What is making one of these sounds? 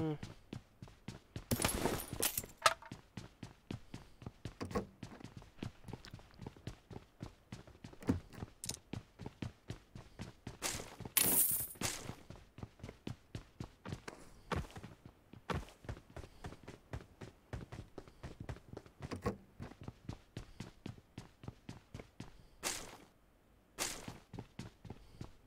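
Quick footsteps thud steadily across wooden floors and pavement.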